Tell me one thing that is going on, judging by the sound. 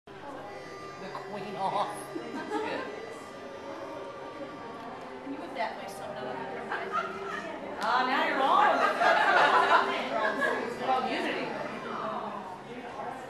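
Several middle-aged women talk and laugh together nearby.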